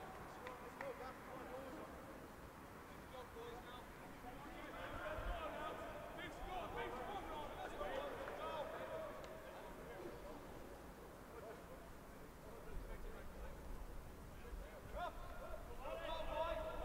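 Men's voices call out and talk across an open field.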